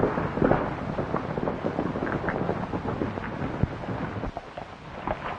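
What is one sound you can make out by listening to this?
Horses' hooves clop slowly on dirt.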